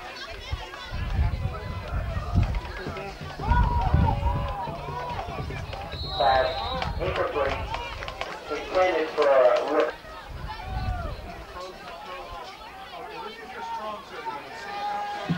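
Spectators shout and cheer outdoors.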